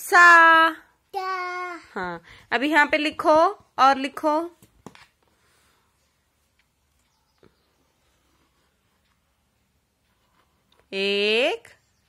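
A young child talks and sings playfully, close by.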